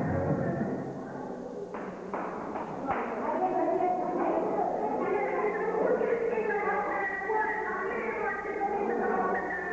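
Young men sing together in a large echoing hall.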